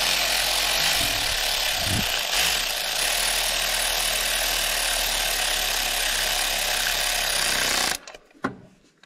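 A diesel engine runs loudly and steadily.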